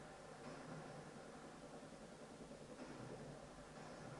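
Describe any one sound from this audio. Explosions boom through a loudspeaker.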